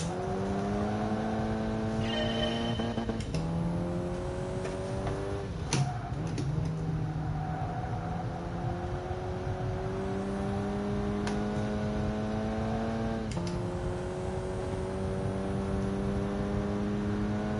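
A car engine revs hard and climbs in pitch, dropping briefly with each gear change.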